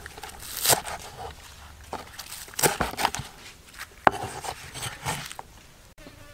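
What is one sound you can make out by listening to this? A knife chops through green onions on a wooden board.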